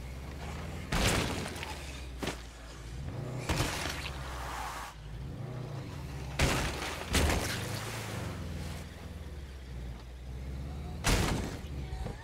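A truck's body bangs and thuds over bumps.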